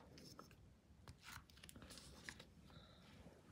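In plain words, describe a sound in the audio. A rubber stamper rubs and taps against a metal plate.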